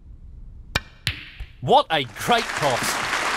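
Snooker balls clack together.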